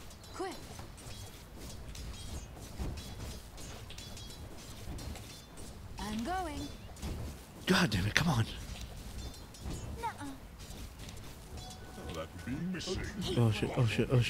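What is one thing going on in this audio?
Fighting game characters clash with bursts of magic and hits.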